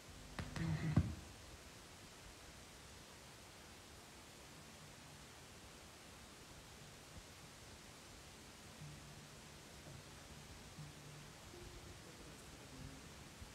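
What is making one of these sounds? A woman speaks softly and close by.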